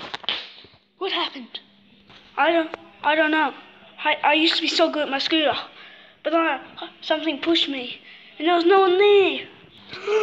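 A young boy talks with animation close to a microphone.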